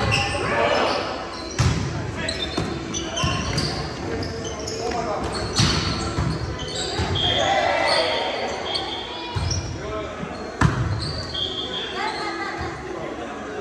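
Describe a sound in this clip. Several adult players call out and talk loudly, echoing in the hall.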